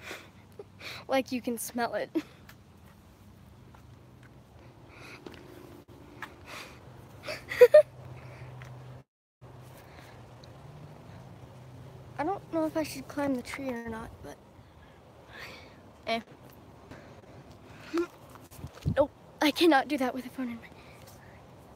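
A young girl talks close to the microphone with animation.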